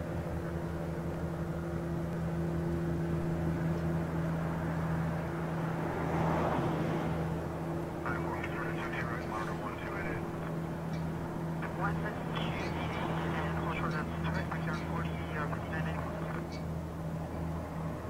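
A jet airliner's engines hum and whine steadily as it taxis nearby.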